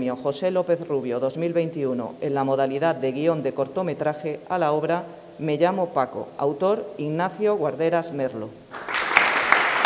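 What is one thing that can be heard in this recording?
A woman reads out announcements through a microphone in an echoing hall.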